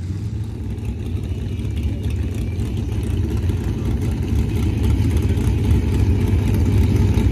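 A truck engine roars loudly and revs, growing louder.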